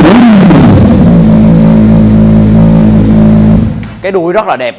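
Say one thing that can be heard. A motorcycle engine idles with a steady rumble.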